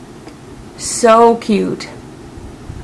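A woman speaks briefly, close to a microphone.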